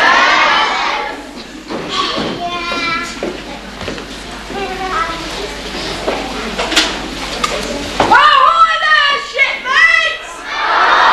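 A young woman sings through loudspeakers in a large echoing hall.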